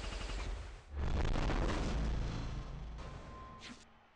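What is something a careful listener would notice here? A loud burst explodes and rumbles.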